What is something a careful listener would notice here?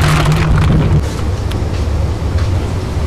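Raw chicken pieces squelch wetly as gloved hands mix them.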